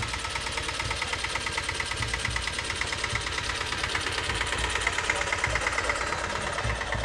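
An old tractor engine chugs steadily nearby.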